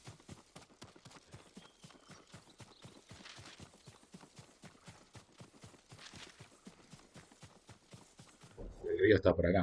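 Quick footsteps run through grass and undergrowth.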